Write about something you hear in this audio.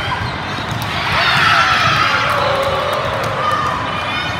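Young women shout and cheer excitedly.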